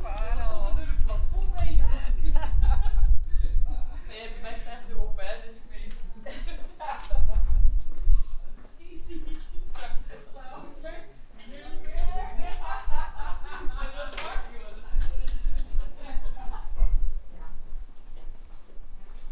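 Men and women talk nearby.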